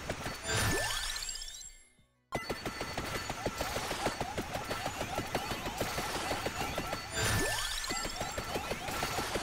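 A bright rising electronic chime plays.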